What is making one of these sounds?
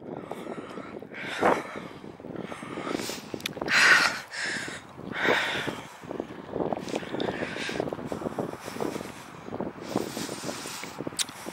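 Footsteps swish through dry grass at a steady walking pace.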